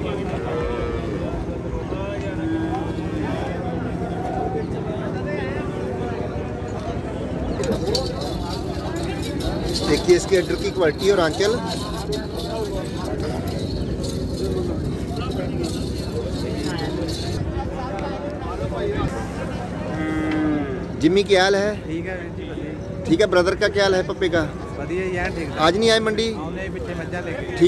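A crowd murmurs outdoors in the background.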